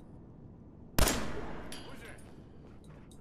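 A pistol fires a single loud shot that echoes and fades.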